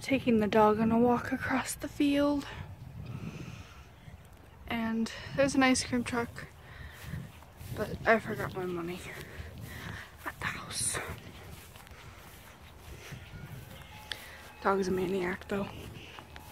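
A young woman talks casually and close by, outdoors.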